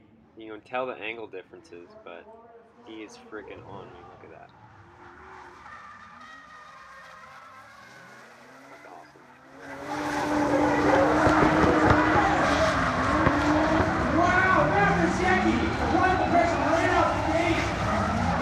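Car engines rev and roar loudly, rising and falling in pitch.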